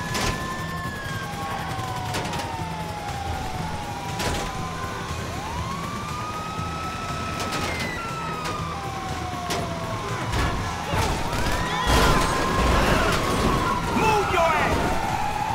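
A heavy truck engine rumbles as it drives.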